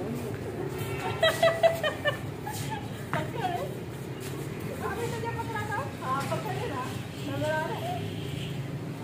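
Women shout and laugh playfully outdoors.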